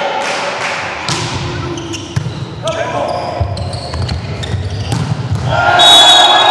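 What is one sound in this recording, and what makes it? A volleyball is struck hard with sharp thuds.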